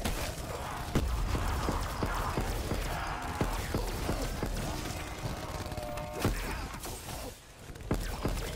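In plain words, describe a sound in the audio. A weapon fires loud electronic zaps.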